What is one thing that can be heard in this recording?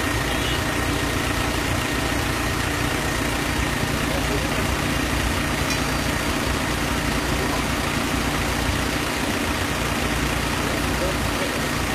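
Strong wind blows across the microphone outdoors.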